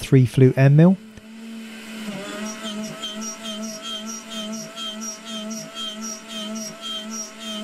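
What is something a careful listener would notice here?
A milling machine whines steadily as its cutter bites into metal in a regular, pulsing rhythm.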